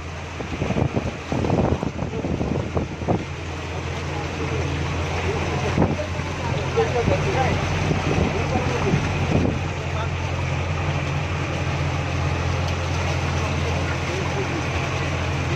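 Water splashes and churns as a vehicle wades through a flooded street.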